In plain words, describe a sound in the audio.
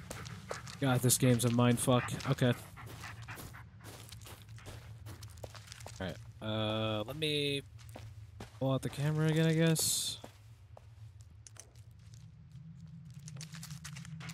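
Footsteps crunch slowly on dirt and gravel.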